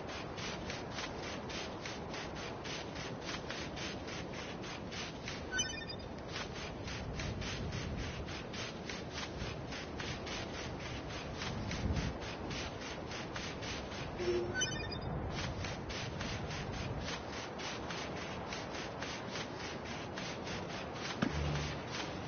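Quick footsteps run across sand.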